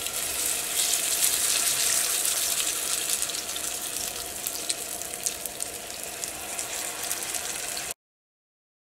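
Food sizzles and crackles in hot oil.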